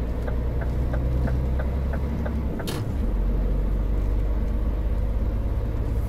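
A car engine drones steadily at low pitch.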